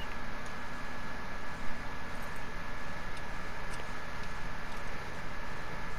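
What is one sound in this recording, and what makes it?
A key clicks in a car's ignition.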